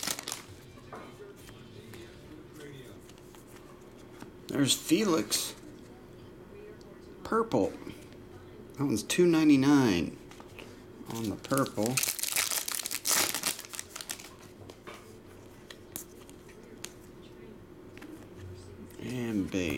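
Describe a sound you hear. Trading cards slide and shuffle against each other.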